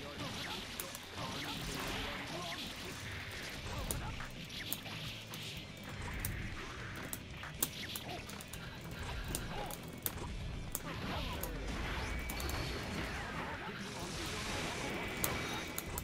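Punches and sword slashes land with sharp hits.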